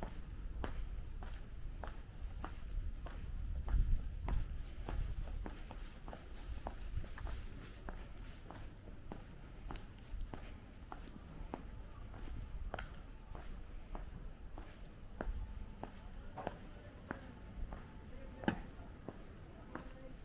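Footsteps tap steadily on pavement.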